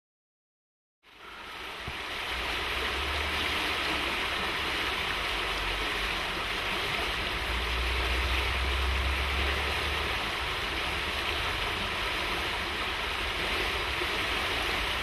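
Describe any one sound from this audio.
A fast stream rushes and gurgles over stones.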